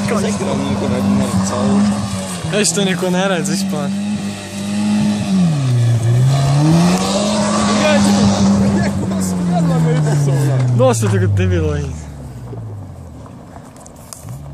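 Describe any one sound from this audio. A car engine roars and revs hard close by, then fades into the distance.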